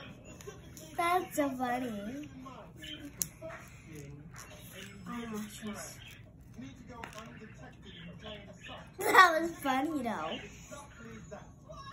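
Paper crinkles in a young girl's hands.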